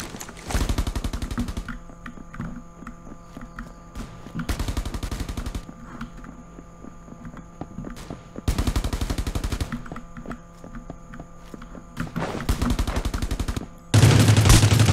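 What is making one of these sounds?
Rapid footsteps patter on a hard floor.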